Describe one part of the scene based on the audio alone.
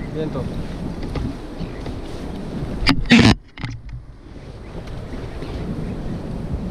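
Water laps against an inflatable boat's hull outdoors in wind.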